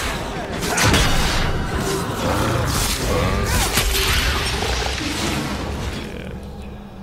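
Magic spells crackle and roar in a loud, swirling blast.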